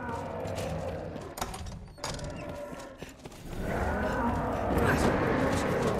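Footsteps run across stone.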